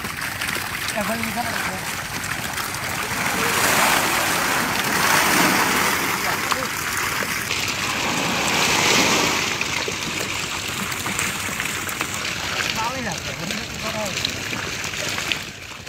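Men talk to one another nearby.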